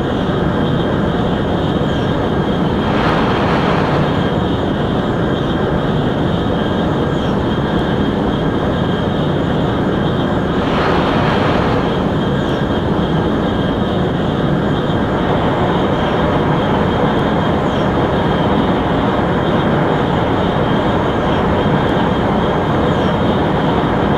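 A high-speed train roars steadily along the track at speed.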